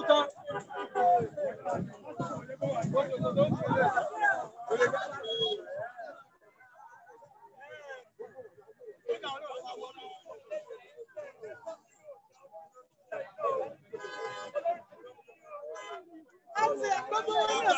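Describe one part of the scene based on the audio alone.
A crowd of young men chant and shout outdoors.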